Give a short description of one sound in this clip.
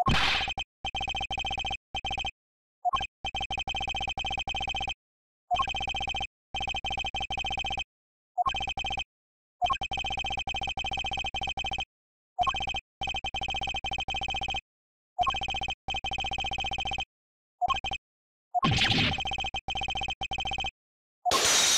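Rapid electronic blips tick in quick bursts.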